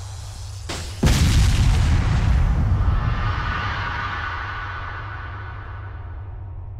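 A loud blast booms and slowly rumbles away.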